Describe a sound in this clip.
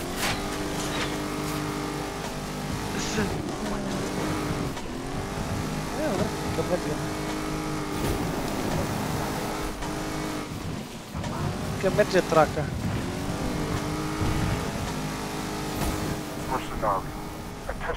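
A car engine revs and strains, its pitch rising and falling.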